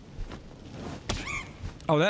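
A fiery blast bursts with a crackle.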